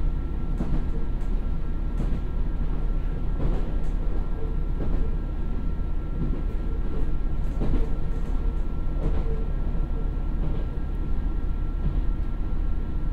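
A diesel train engine rumbles steadily close by.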